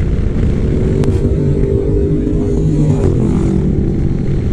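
Other motorcycles roar past nearby.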